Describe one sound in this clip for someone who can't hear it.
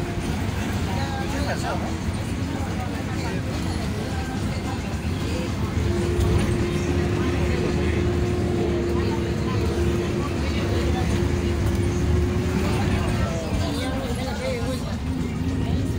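Wet tyres hiss on a rainy road.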